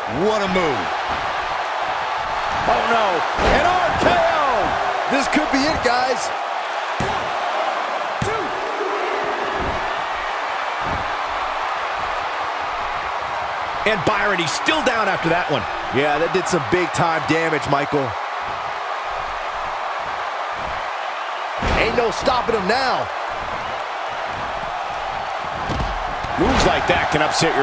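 Bodies slam onto a wrestling ring mat with heavy thuds.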